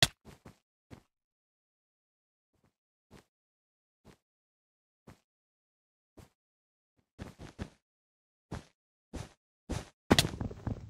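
Blocks are placed with short, soft clicks.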